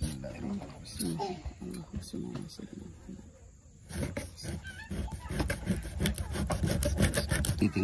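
A knife scrapes scales off a fish.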